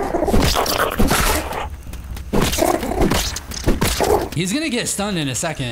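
A weapon strikes a giant beetle with sharp, heavy thuds.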